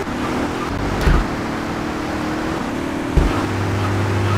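A car thumps over bumps in the road.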